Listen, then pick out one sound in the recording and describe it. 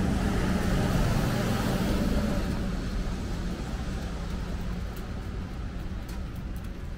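City traffic hums steadily outdoors on a wet street.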